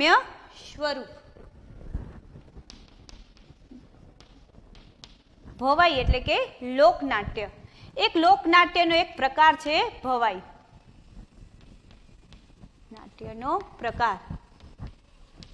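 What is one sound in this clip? A young woman speaks calmly and clearly, as if teaching.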